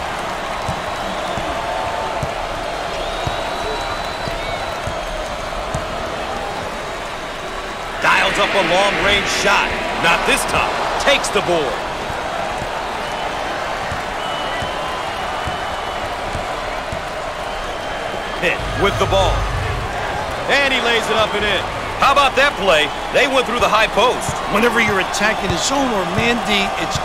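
A crowd murmurs and cheers steadily in a large echoing arena.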